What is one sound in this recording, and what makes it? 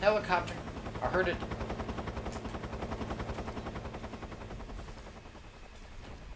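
A military attack helicopter's rotor thumps overhead, then fades.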